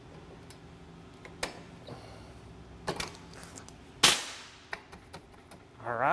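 Metal tools click and scrape against brake parts.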